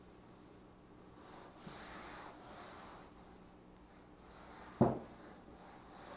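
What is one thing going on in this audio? Hands rub and smooth a foam sheet.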